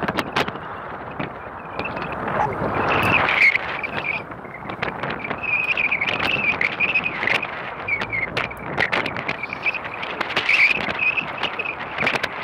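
Wind blows across open water outdoors.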